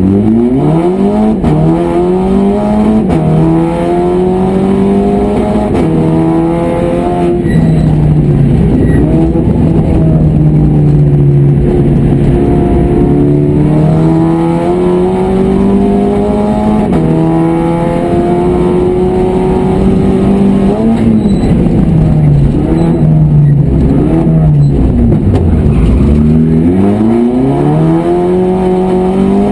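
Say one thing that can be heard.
A race car engine roars loudly, revving up and down through the gears.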